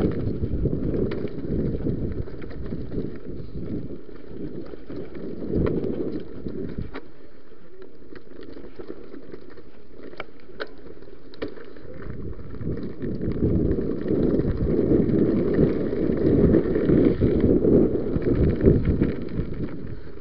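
Bicycle tyres rumble and crunch over a dirt and rocky trail.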